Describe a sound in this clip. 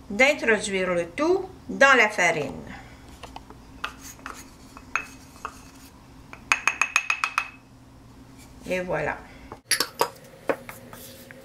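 A wooden spoon scrapes and knocks against a plastic bowl.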